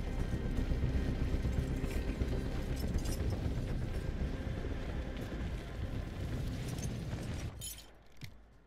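Wind rushes past with a low, steady roar, then drops away.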